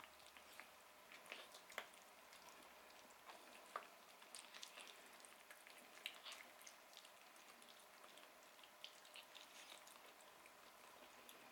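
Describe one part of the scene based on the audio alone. Small animals chew and lap wet food noisily, close by.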